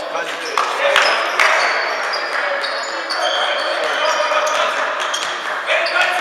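Sneakers squeak on an indoor court in a large echoing hall.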